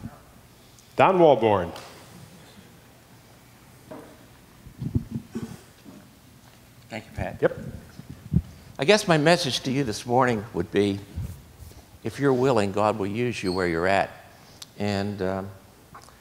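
A man speaks with animation through a microphone in a large room, with pauses between phrases.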